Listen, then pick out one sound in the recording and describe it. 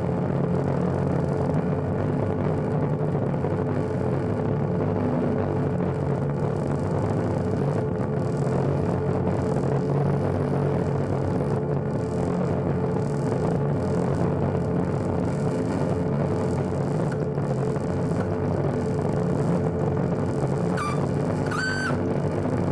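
Dense electronic drones and noise throb steadily over loudspeakers.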